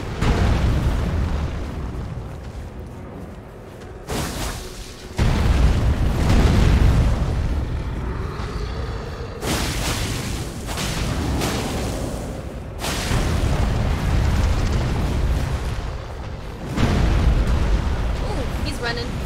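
A young woman talks into a headset microphone.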